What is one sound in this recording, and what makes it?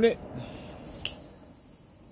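A torch lighter clicks.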